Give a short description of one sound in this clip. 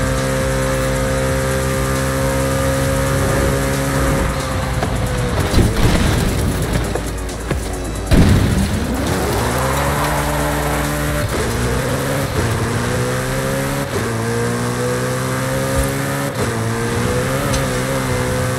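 A sports car engine roars at high speed, dropping and climbing again through the gears.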